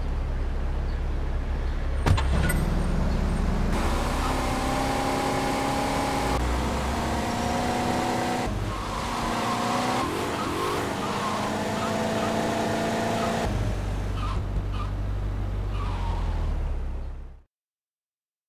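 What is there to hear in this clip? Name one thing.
A car engine hums steadily as a car drives along a street.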